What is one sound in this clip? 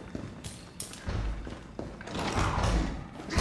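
Swinging doors push open.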